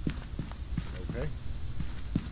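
A man speaks briefly and quietly into a microphone.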